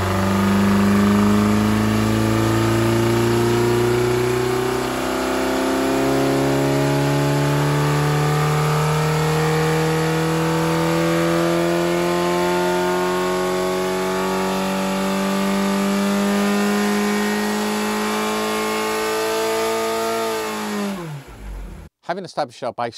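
An engine roars loudly, its pitch climbing steadily as it revs higher, then winds down.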